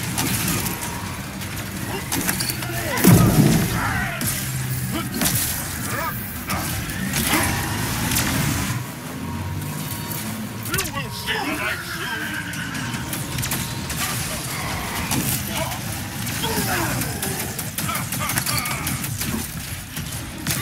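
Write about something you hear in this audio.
Laser beams hum and crackle.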